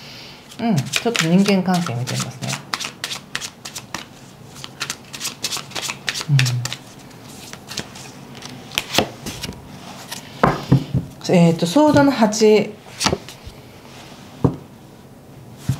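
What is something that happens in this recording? Cards shuffle and flick against each other.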